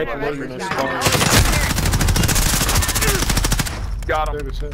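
Rapid gunfire rattles at close range.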